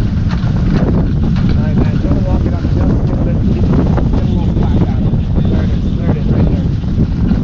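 A man talks nearby, raised over the wind.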